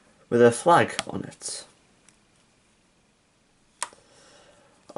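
Plastic toy bricks click as a hand handles them.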